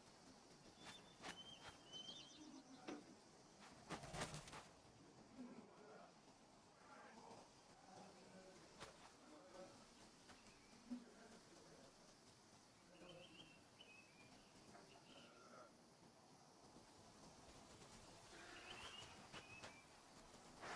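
A hawk screeches high overhead.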